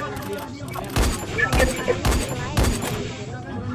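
A rifle fires several loud shots in quick succession.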